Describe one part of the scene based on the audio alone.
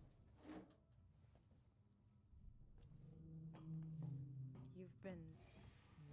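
Footsteps clang on a metal grating floor.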